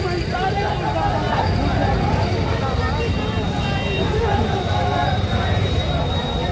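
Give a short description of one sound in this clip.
Motorcycle engines idle nearby.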